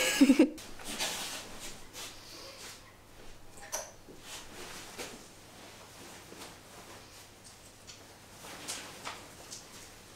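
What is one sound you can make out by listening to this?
Fabric rustles softly as a long dress is handled.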